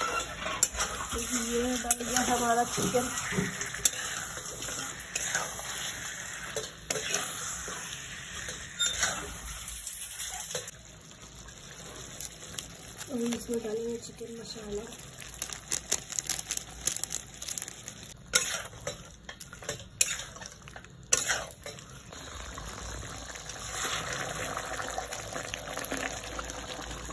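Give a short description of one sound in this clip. Food sizzles and fries in hot oil in a pan.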